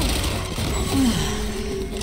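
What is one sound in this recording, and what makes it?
A magical ability bursts with a loud whoosh.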